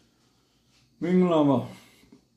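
An elderly man speaks calmly and close through a clip-on microphone.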